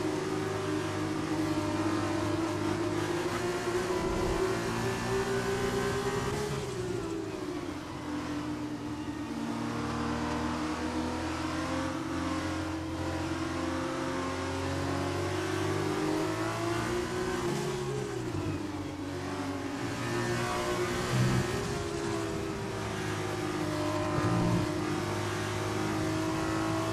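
A racing car engine whines loudly, its pitch rising and falling as it speeds up and brakes.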